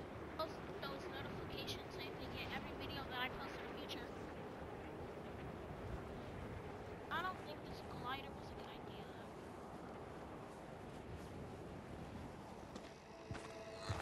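Wind rushes steadily past during a glide through the air.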